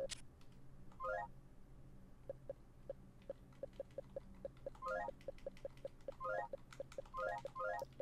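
Short electronic beeps sound as keys are pressed.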